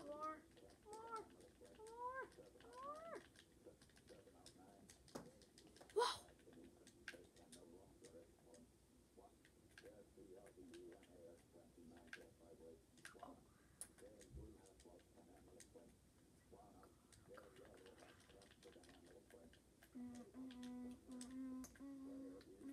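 Game blocks crack and break with quick, dry clicks.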